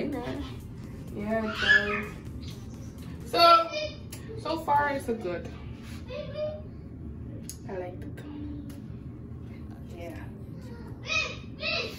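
A young woman talks close by, with animation.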